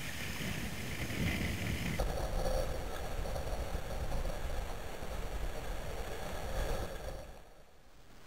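Water laps and splashes against a kayak's hull.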